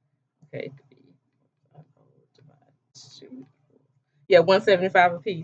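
A woman speaks close to the microphone, quietly at first and then louder with animation.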